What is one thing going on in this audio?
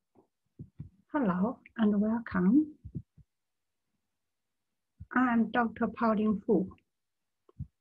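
A middle-aged woman speaks calmly, heard through an online call.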